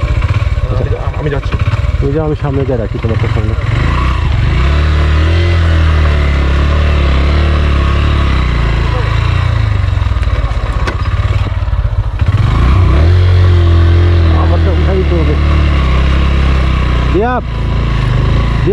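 A small single-cylinder motorcycle engine runs at low speed on a rough track.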